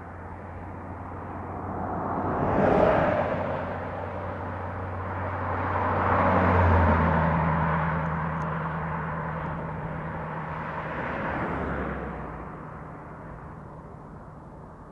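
A car engine hums as a convertible drives past and fades into the distance.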